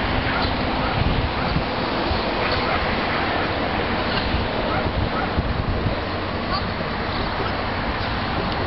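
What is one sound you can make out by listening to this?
Wind blows across an open outdoor area.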